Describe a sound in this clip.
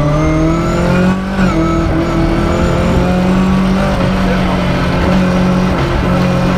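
A rally car engine roars loudly from inside the cabin, revving up and down.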